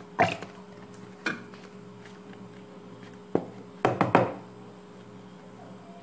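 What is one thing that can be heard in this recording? Cream pours from a carton into a pot of milk.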